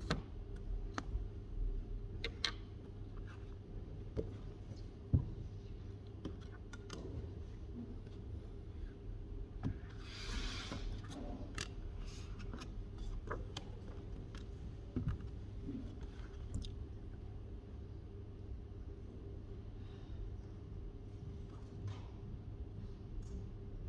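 Laptop keys click softly under typing fingers.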